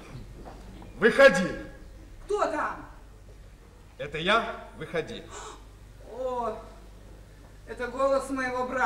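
A man calls out expressively through a microphone, with a slight echo of a large hall.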